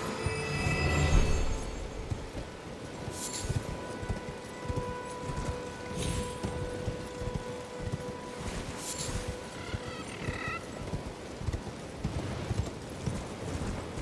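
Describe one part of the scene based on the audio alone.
A horse's hooves thud steadily as it gallops over ground.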